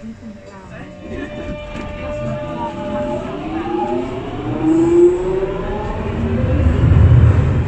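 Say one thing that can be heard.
An underground train pulls away with a rising electric whine.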